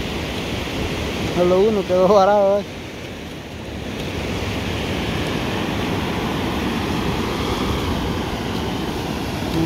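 Waves wash steadily onto a beach outdoors.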